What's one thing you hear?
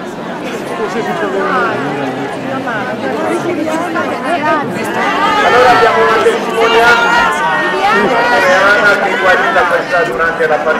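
A crowd of men and women talk over one another close by, outdoors.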